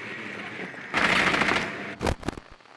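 Gunfire rattles in a short, loud burst.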